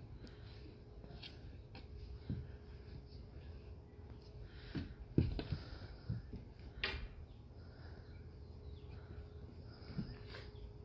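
A small child's shoes thump and scrape against a wooden climbing board.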